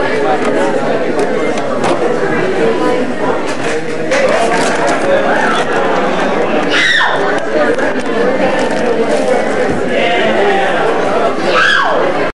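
A crowd chatters and shouts nearby in a noisy, echoing room.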